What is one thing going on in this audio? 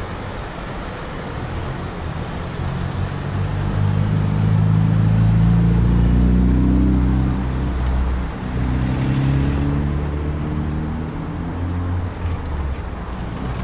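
Cars drive past nearby with a rising and falling engine hum.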